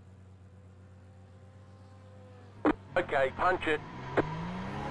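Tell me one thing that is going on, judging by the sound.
A racing car engine idles with a low steady hum.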